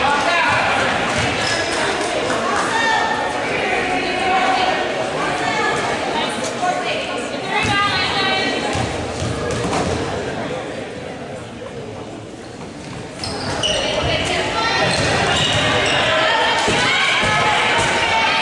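Young women shout and call out across an echoing hall.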